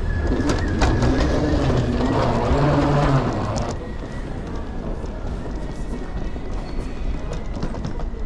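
Suitcase wheels roll over a hard floor.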